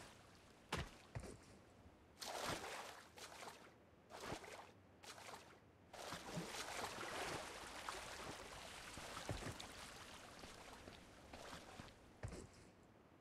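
Water splashes as a swimmer paddles steadily.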